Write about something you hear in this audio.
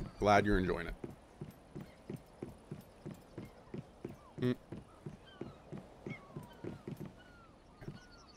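Footsteps thud on wooden stairs and decking.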